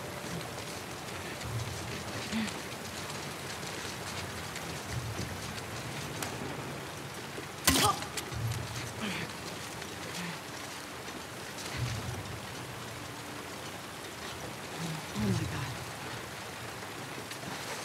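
Tall grass rustles as someone crawls through it.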